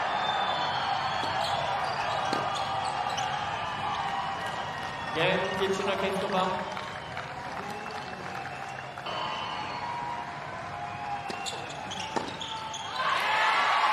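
Rackets strike a tennis ball with sharp pops.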